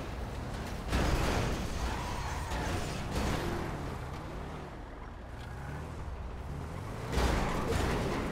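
A vehicle crashes into cars with loud thuds.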